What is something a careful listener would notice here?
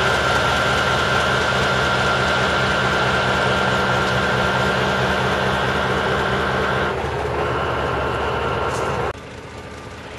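A truck's diesel engine rumbles loudly nearby.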